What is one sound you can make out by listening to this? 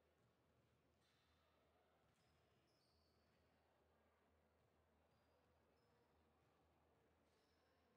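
Sneakers squeak on a hard court in a large echoing hall.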